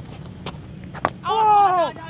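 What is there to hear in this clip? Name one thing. A bat strikes a cricket ball with a sharp crack.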